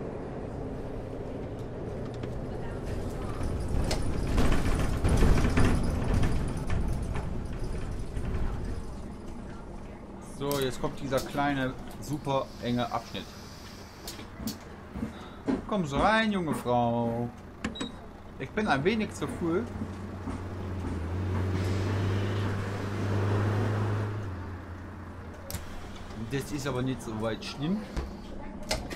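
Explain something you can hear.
A bus engine hums and rumbles.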